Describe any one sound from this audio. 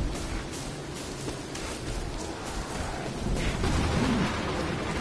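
Footsteps crunch through undergrowth at a run.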